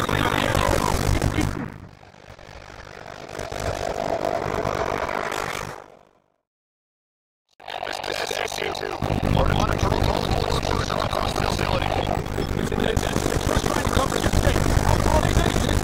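Rapid gunfire bursts close by.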